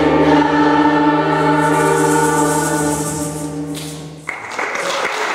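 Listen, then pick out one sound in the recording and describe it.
A children's choir sings a held final chord in a large hall.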